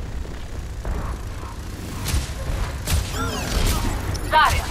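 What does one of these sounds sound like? Guns fire in short bursts.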